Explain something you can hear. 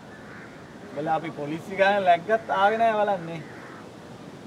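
A man answers calmly nearby.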